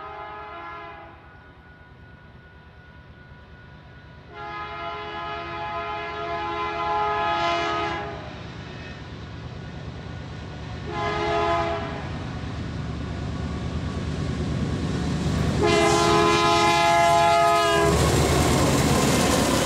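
A diesel locomotive engine rumbles as the train approaches.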